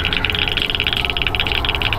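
A campfire crackles nearby.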